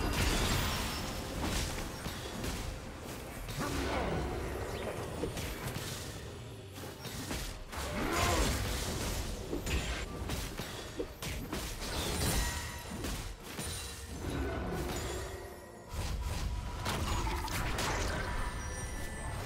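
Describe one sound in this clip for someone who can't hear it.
Game combat sounds of spells blasting and weapons clashing ring out in quick bursts.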